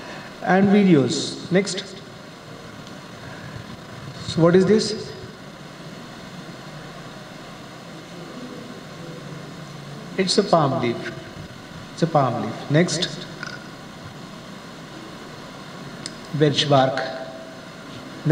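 A man speaks calmly in short phrases through a microphone in a room with a slight echo.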